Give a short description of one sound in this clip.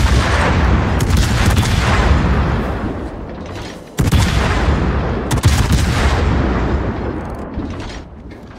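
Heavy naval guns fire with deep, booming blasts that rumble and slowly fade.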